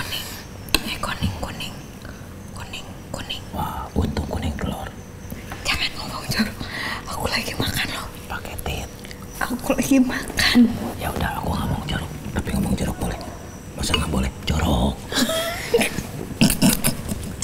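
Cutlery clinks against bowls.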